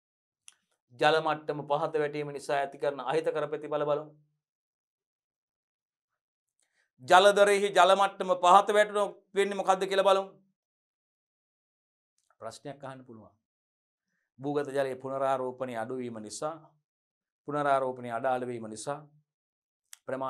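A man lectures clearly into a close microphone, speaking in bursts with pauses.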